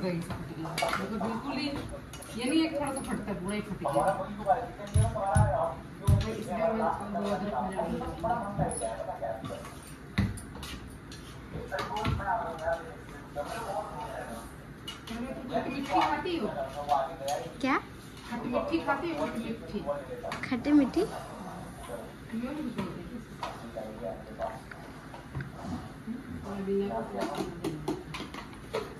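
Metal utensils clink and knock against pots.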